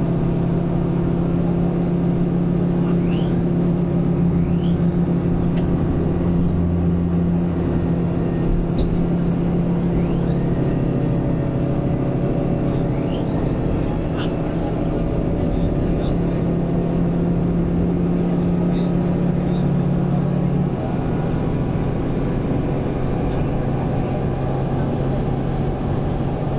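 A bus engine idles with a steady low hum close by.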